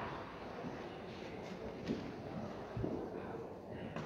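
Footsteps echo softly in a large, echoing hall.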